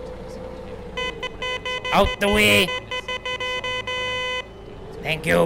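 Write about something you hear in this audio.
A reversing alarm beeps rapidly.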